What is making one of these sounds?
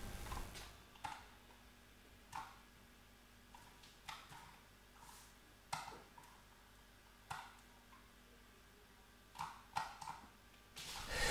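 Tuning pins creak and click as a man turns them inside a piano.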